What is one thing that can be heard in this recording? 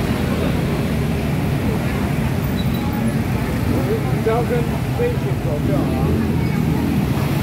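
A large crowd of people chatter and shout outdoors.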